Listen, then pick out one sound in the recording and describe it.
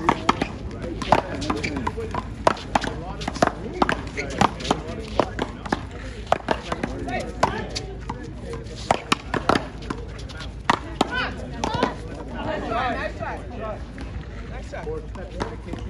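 A ball smacks against a wall and paddles with sharp echoing thwacks, outdoors.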